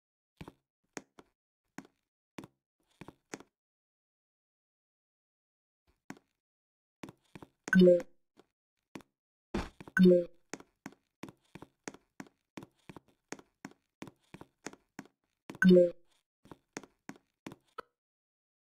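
Quick game footstep clicks tap over and over as a character climbs and runs.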